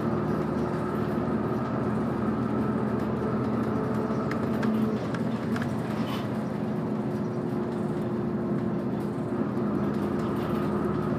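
A vehicle engine hums steadily from inside a moving car.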